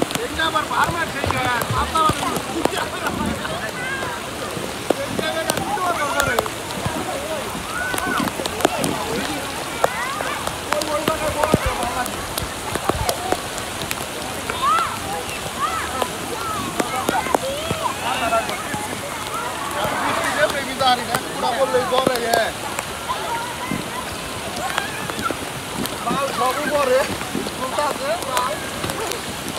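Children and adults chatter and shout nearby, outdoors.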